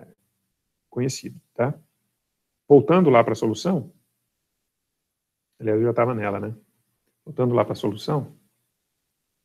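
A man speaks calmly through a microphone on an online call, in short phrases with pauses.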